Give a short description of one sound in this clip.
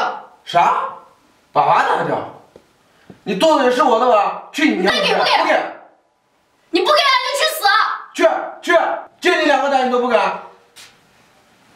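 A young man speaks angrily and close by.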